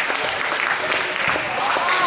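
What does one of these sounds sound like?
A spectator claps hands.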